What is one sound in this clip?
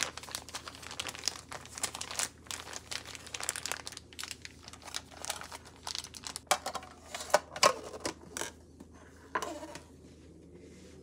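Plastic wrap crinkles and rustles under pressing hands.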